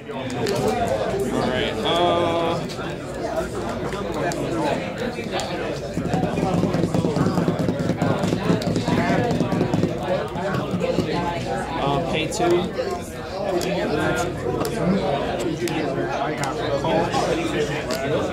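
Playing cards slide and tap softly on a table mat.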